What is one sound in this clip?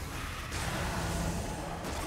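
A fire explosion bursts with a roar.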